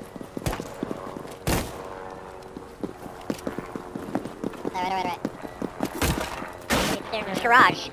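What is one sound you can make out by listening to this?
Rifle shots ring out in sharp single bursts.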